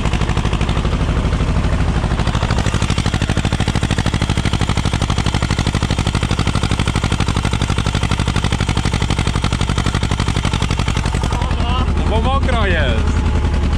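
A tractor's diesel engine chugs steadily close by.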